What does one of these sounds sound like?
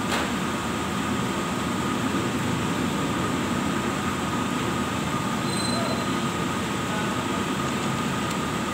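An electrical machine hums steadily.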